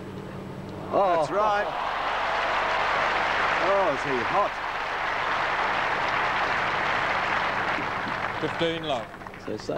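A large crowd applauds and cheers loudly, then fades.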